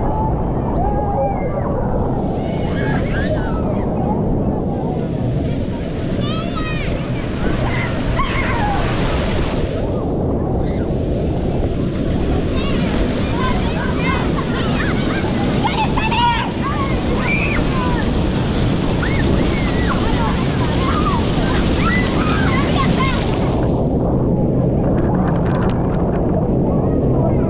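Water splashes and pours steadily from a fountain.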